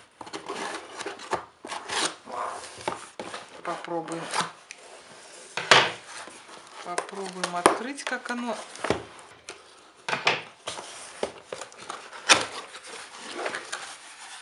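A cardboard box scrapes and thumps as it is handled.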